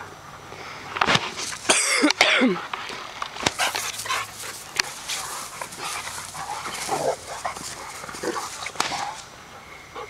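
Dogs growl playfully as they wrestle close by.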